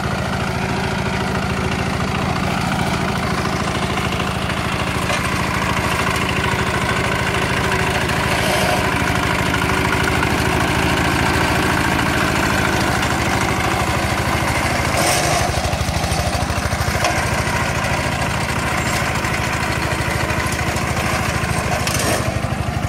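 A single-cylinder diesel two-wheel walking tractor chugs under load.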